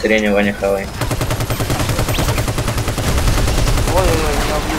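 A machine gun fires in rapid, steady bursts.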